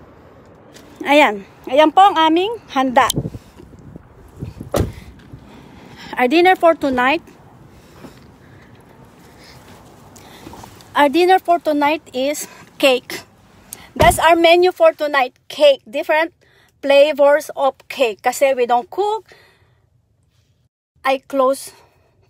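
A woman talks with animation close to a phone microphone.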